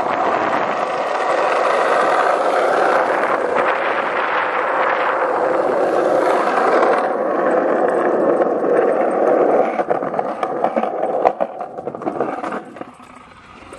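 Small wheels roll fast and rumble over rough pavement.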